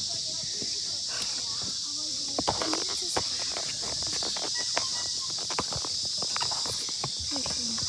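Hands fumble and knock against the recorder.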